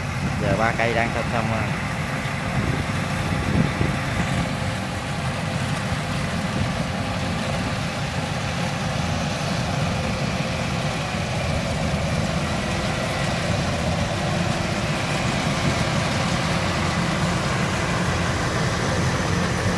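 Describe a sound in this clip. A combine harvester engine rumbles steadily and draws closer.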